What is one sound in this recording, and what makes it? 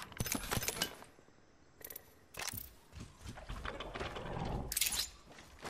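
Short video game clicks and clatters sound as items are picked up.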